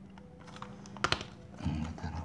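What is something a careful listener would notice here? A test lead clicks into a multimeter socket.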